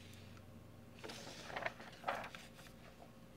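Paper pages rustle and flip as a page turns.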